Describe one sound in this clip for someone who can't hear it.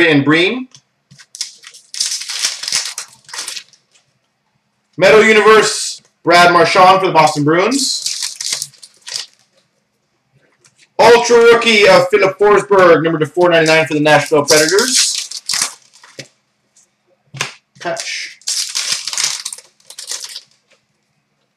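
Card pack wrappers crinkle and tear.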